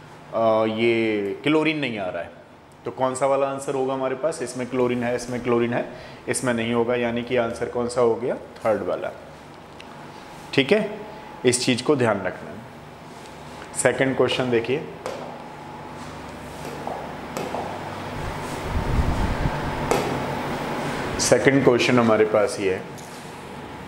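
A man speaks calmly and clearly, as if teaching.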